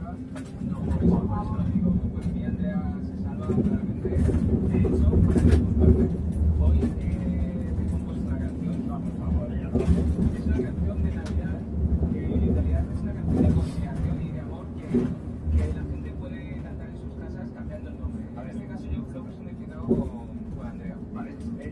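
A bus engine hums and drones steadily while driving.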